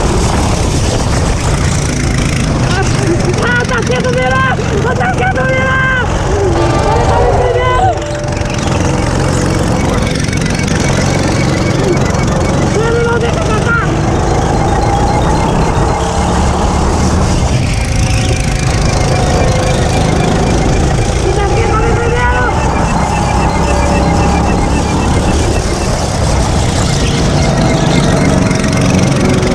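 Small four-stroke go-kart engines buzz and rev close by as the karts race.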